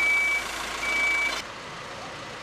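A loader's diesel engine rumbles and whines close by.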